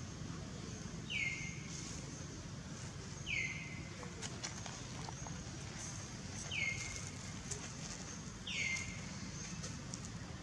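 A monkey's feet rustle through dry leaves as it walks.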